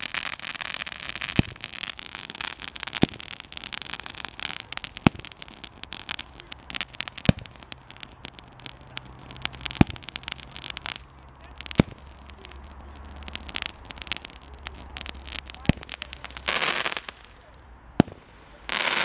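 Fountain fireworks hiss and crackle steadily.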